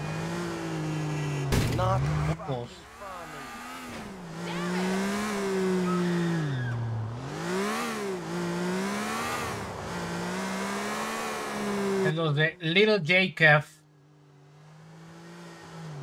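A car engine hums and revs up and down as the car drives.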